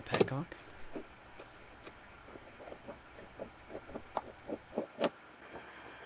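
A plastic connector clicks as it is pushed onto a fitting.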